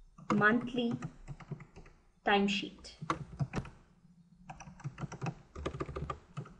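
Keys click quickly on a keyboard.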